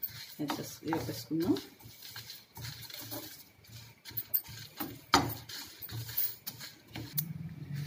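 Spices sizzle and crackle in hot oil.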